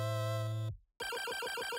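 Retro electronic game music plays, then cuts off.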